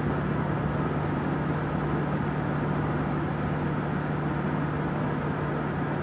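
A car's engine hums steadily from inside the cabin.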